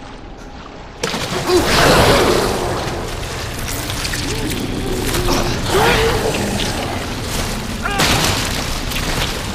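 A monster roars and snarls loudly.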